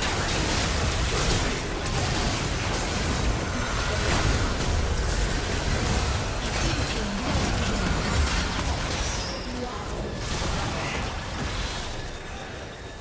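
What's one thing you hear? Video game spell effects crackle and boom in a busy fight.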